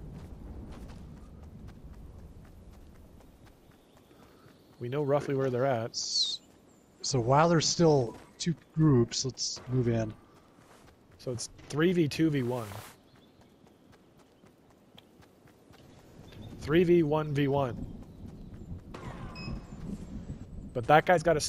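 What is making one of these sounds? Footsteps patter quickly over wood and grass.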